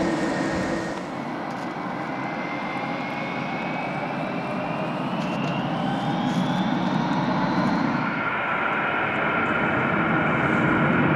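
The turbofan engines of a taxiing jet airliner whine.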